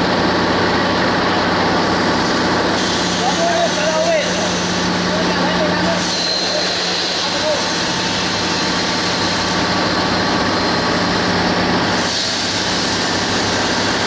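A machine hums and rumbles steadily.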